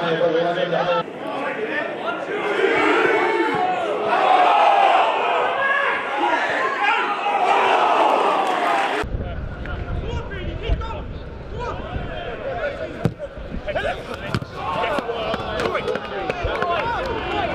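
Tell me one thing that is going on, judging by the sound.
A football crowd cheers and shouts in a stadium.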